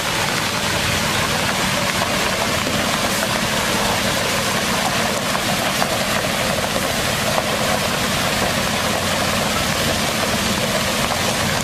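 Water sprays and splashes hard onto the ground.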